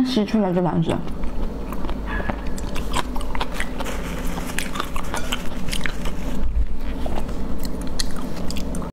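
A young woman chews food noisily close by, smacking her lips.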